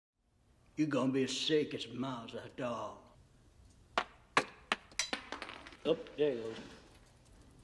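A middle-aged man speaks quietly and hoarsely, close by.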